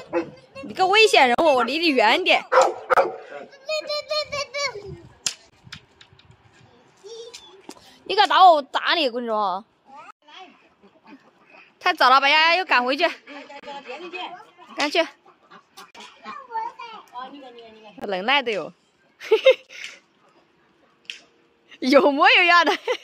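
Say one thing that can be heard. A small boy shouts playfully.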